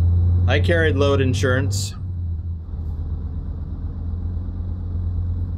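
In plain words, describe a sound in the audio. A truck engine hums low and steadily.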